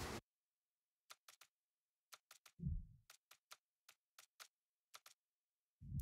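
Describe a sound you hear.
Soft interface clicks tick one after another.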